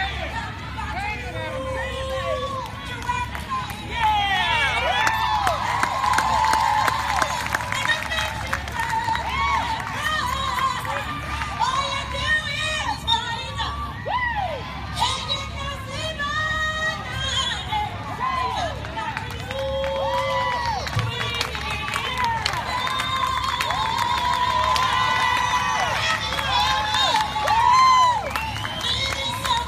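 A woman sings loudly through outdoor loudspeakers.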